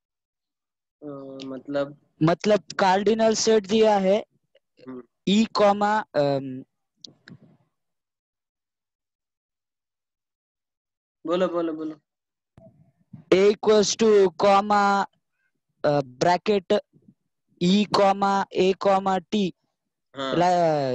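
A man speaks calmly and steadily into a close microphone.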